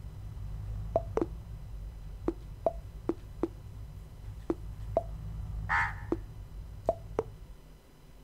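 Short electronic blips sound in quick succession.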